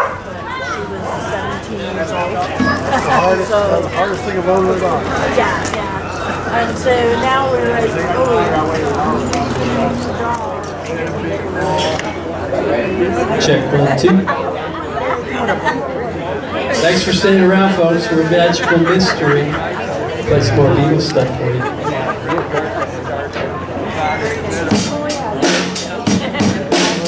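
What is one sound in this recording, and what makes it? A live band plays music in a room.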